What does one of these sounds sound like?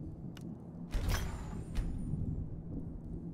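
A magical chime rings out brightly.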